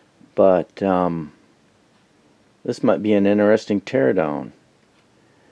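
A recorded male voice gives calm spoken prompts through a small loudspeaker.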